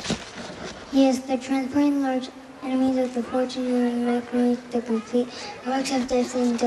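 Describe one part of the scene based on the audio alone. A young boy sings through a microphone over loudspeakers.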